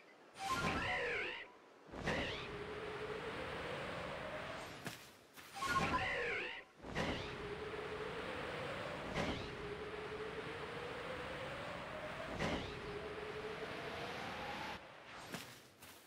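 Wind rushes past steadily during flight.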